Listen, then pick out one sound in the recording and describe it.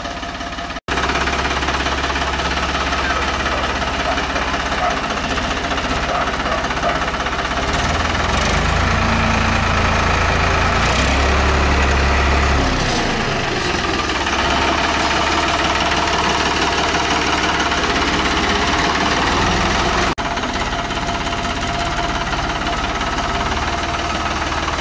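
A diesel tractor engine runs.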